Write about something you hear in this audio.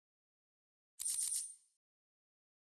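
A bright menu chime rings.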